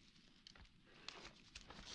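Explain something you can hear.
Cabbage leaves rustle and crunch as they are handled.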